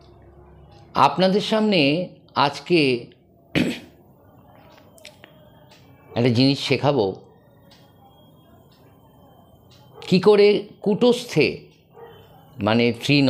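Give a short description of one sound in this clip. A middle-aged man speaks close up in short, slow phrases with pauses between them.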